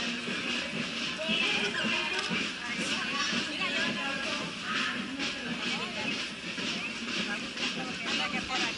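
A large crowd chatters and cheers outdoors along a street.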